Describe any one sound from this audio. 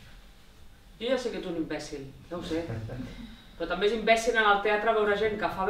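Another young woman speaks expressively in reply.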